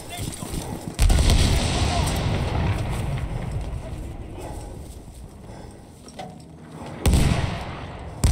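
Heavy explosions boom nearby, with a deep rumble that slowly fades.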